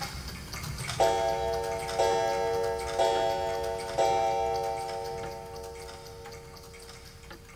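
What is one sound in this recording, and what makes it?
A clock chimes four slow strokes that ring out and fade.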